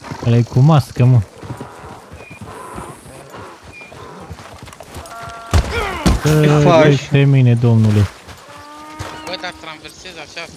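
Horse hooves clop on dirt.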